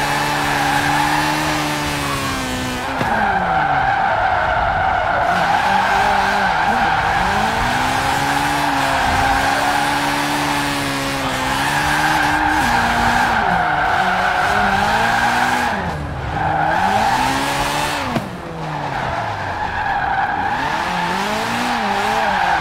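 Tyres hiss and skid over icy road.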